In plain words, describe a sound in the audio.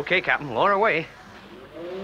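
A man speaks briefly, close by.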